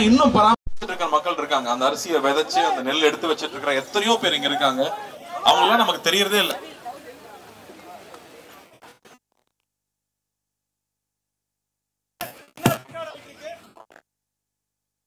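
A young man speaks with animation through a microphone and loudspeakers outdoors.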